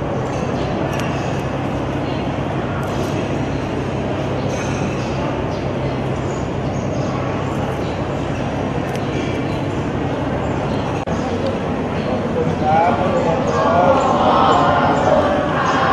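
A crowd murmurs and chatters in an echoing hall.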